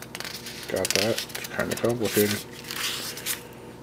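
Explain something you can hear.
A notebook page rustles as it turns.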